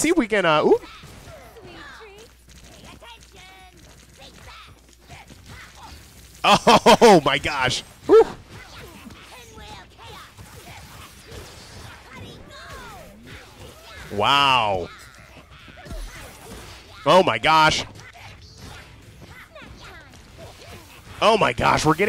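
Punches, kicks and magic blasts thud and crackle in a fast fight.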